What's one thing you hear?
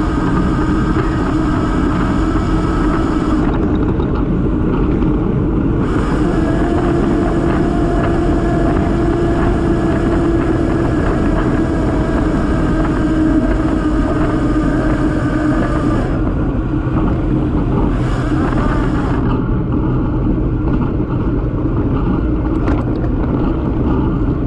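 Wind rushes and buffets loudly outdoors.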